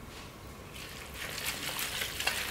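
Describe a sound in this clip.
Crisp greens rustle as a gloved hand tosses them into noodles.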